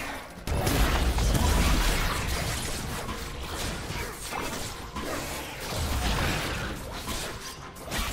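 Magic blasts crackle and boom in a fast fight.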